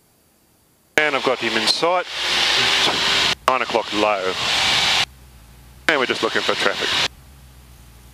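A man speaks calmly over a headset radio.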